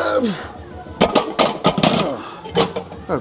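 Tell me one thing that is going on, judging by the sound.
A loaded barbell clanks down onto a metal rack.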